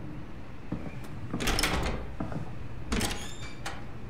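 A door opens and closes with a thud.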